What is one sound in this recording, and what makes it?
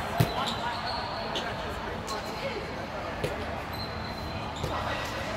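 A volleyball thuds sharply off a player's hands in a large echoing hall.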